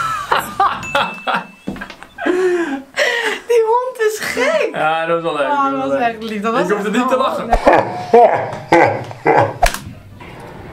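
A young man laughs and shouts with excitement nearby.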